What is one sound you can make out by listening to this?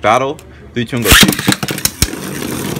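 A launcher rips as a spinning top is released.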